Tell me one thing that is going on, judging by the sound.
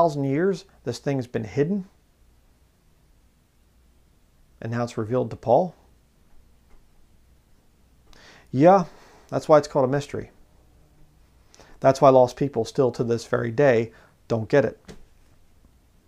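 A man speaks calmly and close by, with pauses between phrases.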